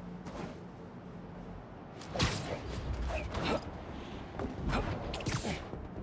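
Wind rushes past in bursts as a figure swings through the air.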